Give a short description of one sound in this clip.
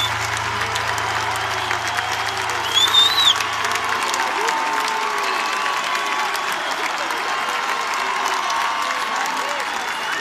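A crowd cheers and shouts loudly in a large open-air space.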